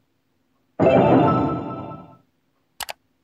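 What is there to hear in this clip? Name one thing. A loud triumphant burst of game music sounds and fades.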